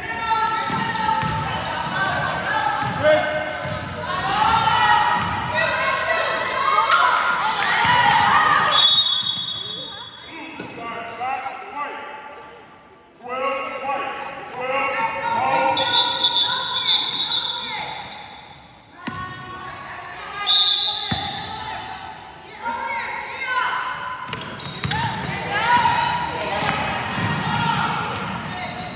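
Players and spectators shout and call out in a large echoing gym.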